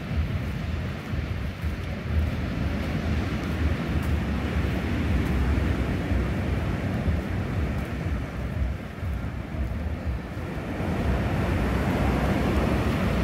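Wind gusts strongly outdoors, rumbling against the microphone.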